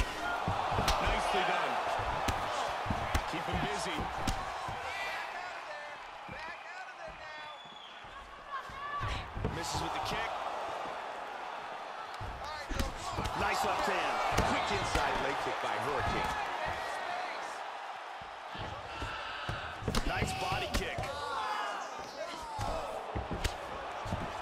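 Kicks and punches land with sharp thuds.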